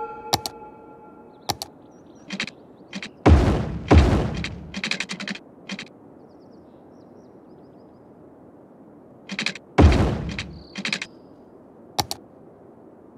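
Soft game interface clicks and whooshes sound as road pieces are placed.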